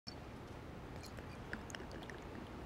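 Liquid pours into a small glass.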